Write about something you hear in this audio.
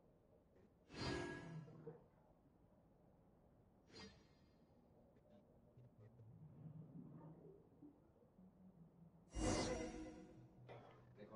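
A sparkling magical whoosh swirls upward.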